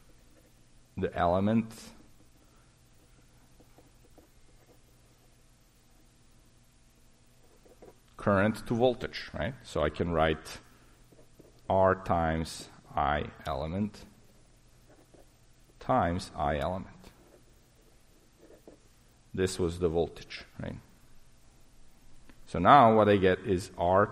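A man speaks calmly through a microphone, in short phrases with pauses.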